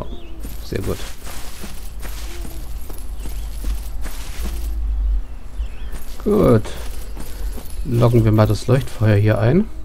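Armored footsteps clank on the ground.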